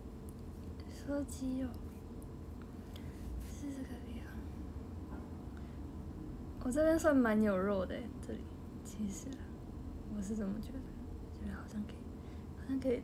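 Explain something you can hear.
A young woman speaks casually, close to a microphone.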